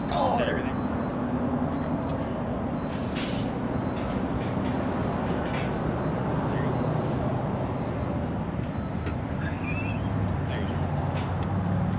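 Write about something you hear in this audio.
A man answers from a window a little way off.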